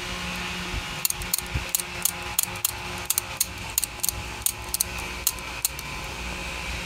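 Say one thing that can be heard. Small metal parts click lightly against each other.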